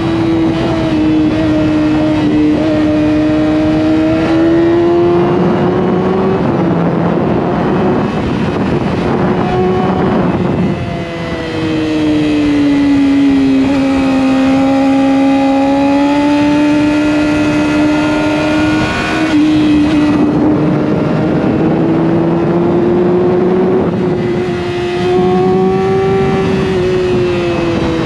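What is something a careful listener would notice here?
A motorcycle engine hums loudly and rises and falls in pitch.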